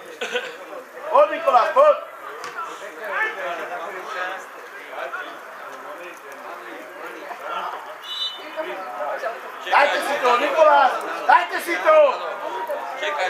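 Players shout across an open field outdoors.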